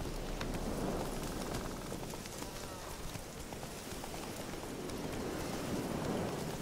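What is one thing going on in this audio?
A horse's hooves thud steadily on soft ground.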